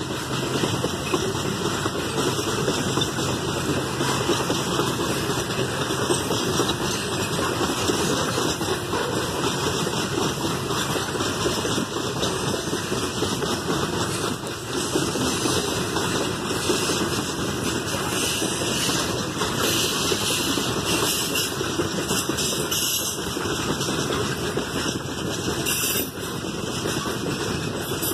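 A long freight train rumbles and clatters steadily past nearby.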